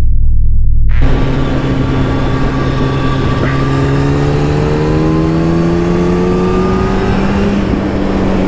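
Wind rushes past loudly at speed.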